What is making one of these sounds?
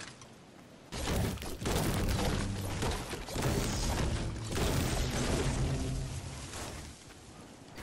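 A pickaxe chops into a tree trunk with dull thuds.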